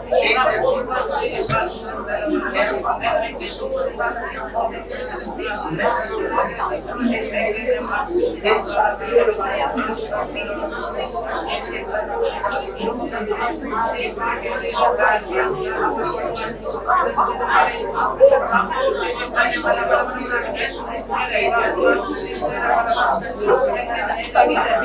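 A man speaks steadily and with feeling into a clip-on microphone.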